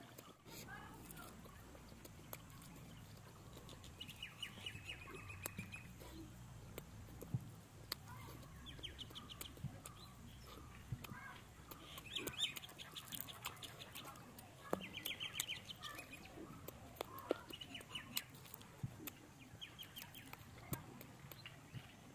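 Crisp roasted meat crackles and snaps as hands tear it apart.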